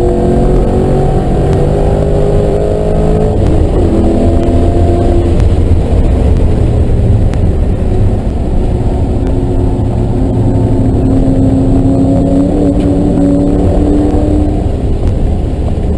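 A car engine roars loudly inside the cabin, its pitch rising and falling as it revs through the gears.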